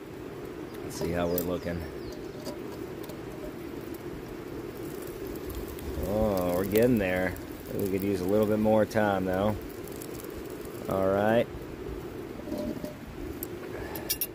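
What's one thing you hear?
A camping gas burner roars steadily.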